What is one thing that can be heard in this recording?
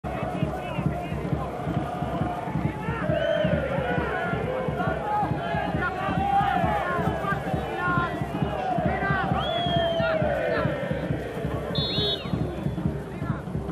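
A crowd in the stands whistles and chants loudly.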